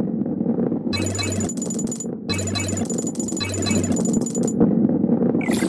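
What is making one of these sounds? A game chimes brightly as coins are collected.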